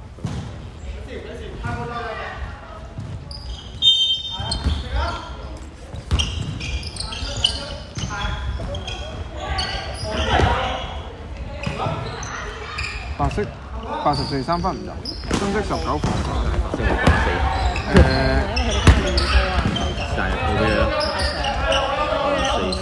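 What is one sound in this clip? Basketball shoes squeak on a hardwood court in a large echoing hall.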